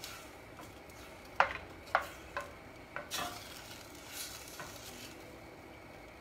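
A wooden spoon stirs thick sauce, scraping and knocking against a metal pot.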